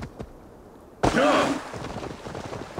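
Water splashes under galloping hooves.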